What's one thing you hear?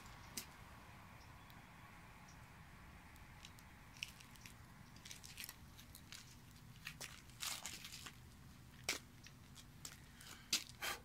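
A small fire burns in a pan with scattered crackles and pops.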